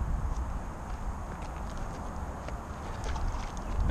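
A stone splashes into water.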